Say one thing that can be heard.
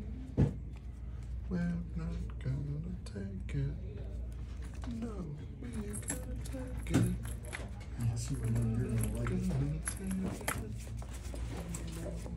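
Playing cards rustle and slide in hands.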